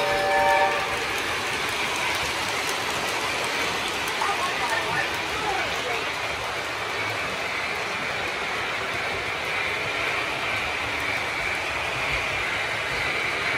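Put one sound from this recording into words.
A model train rumbles steadily along its track.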